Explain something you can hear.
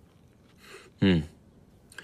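A young man murmurs briefly, close by.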